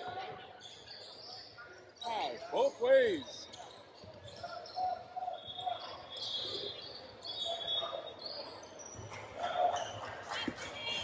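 Young people call out and chatter in a large echoing gym.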